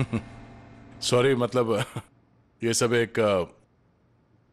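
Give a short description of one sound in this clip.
A man speaks with a smile in his voice, close by.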